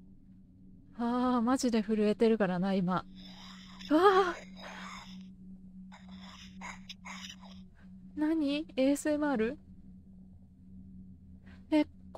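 A young woman talks with animation into a microphone, her voice rising and falling.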